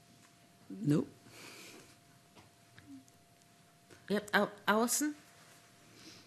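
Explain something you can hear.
A middle-aged woman speaks briefly and calmly into a microphone.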